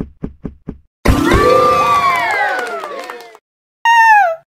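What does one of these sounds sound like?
A cheerful fanfare plays as a level is completed.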